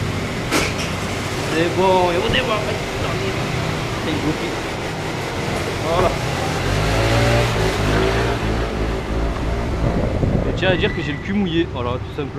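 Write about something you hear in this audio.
A scooter engine idles and then revs up as the scooter pulls away.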